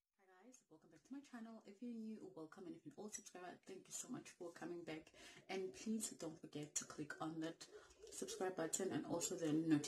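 A woman speaks calmly and softly close to a microphone.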